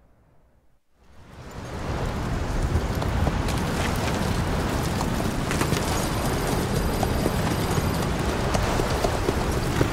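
Wind roars through a sandstorm.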